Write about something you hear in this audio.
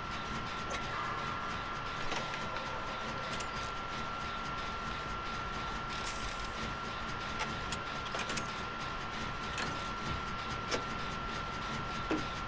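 Metal parts clink and rattle as a machine is repaired by hand.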